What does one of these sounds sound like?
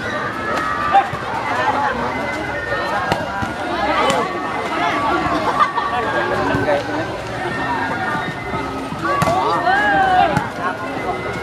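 A ball is struck hard with a sharp slap, several times.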